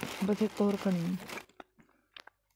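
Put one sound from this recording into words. A young woman speaks briefly and softly, close to a microphone.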